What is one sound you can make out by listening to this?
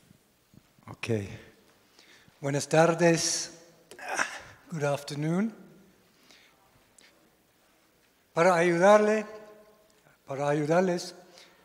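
A man speaks with animation into a microphone, heard through loudspeakers in a large echoing hall.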